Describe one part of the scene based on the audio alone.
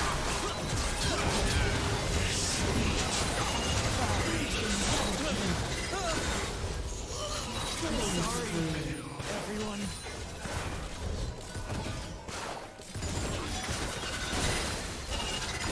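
Spell effects crackle and clash in a fast game battle.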